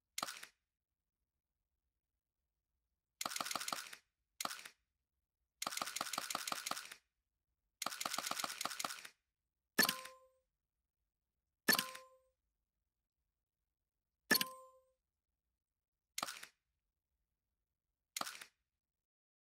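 Video game menu sounds whoosh and chime as selections change.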